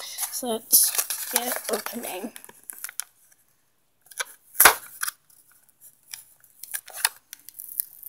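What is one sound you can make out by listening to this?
Stiff plastic packaging crinkles and taps as hands handle it.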